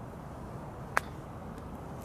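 A golf club strikes a ball with a sharp click.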